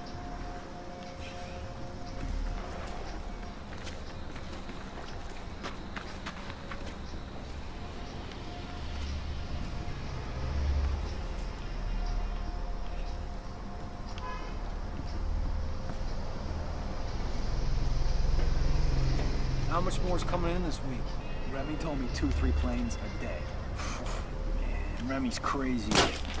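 Footsteps crunch and thud on boards and gravel.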